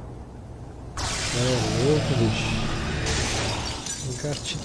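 Eerie whooshing effects swirl as ghostly shapes burst through a gate.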